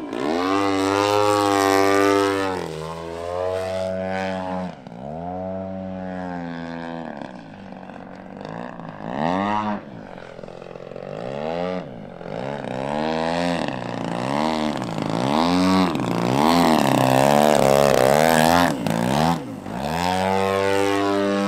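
A model plane's engine whines loudly, rising and falling in pitch as it flies overhead.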